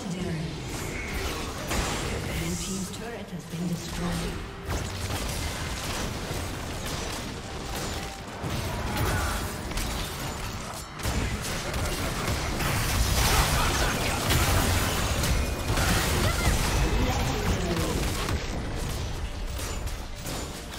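Magic spells whoosh, burst and crackle in a busy fight.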